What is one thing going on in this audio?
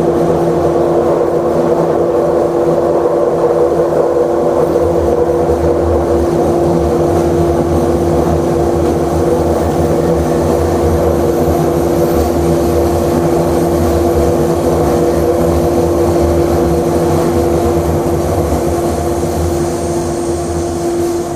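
A motor hums with a steady drone.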